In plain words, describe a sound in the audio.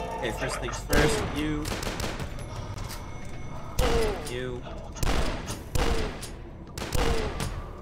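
A shotgun fires loud, booming blasts.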